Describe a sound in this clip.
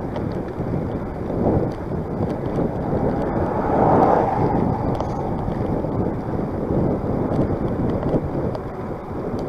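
Wind buffets loudly against a moving vehicle.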